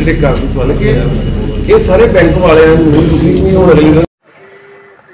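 A man speaks loudly and steadily into a microphone.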